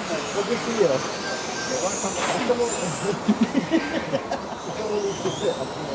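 Small electric model cars whine as they speed by outdoors.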